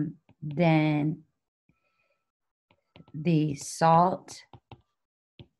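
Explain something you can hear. A woman speaks calmly, as if teaching, close to a microphone.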